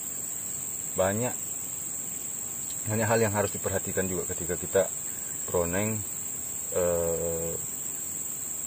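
A young man speaks calmly nearby, outdoors.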